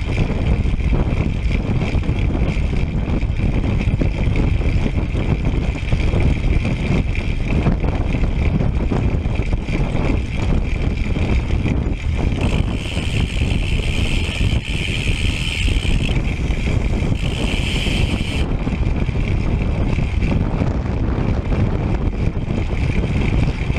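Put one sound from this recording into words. Wind rushes loudly and steadily past a moving bicycle.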